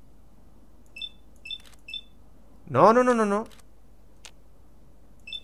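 Short electronic beeps chirp several times.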